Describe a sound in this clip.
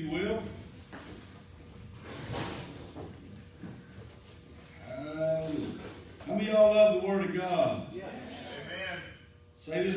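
A man speaks through loudspeakers in a large echoing hall.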